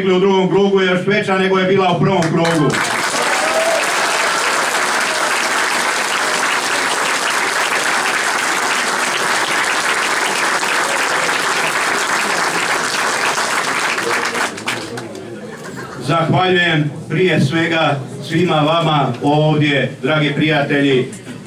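A middle-aged man speaks loudly into a microphone to a crowd.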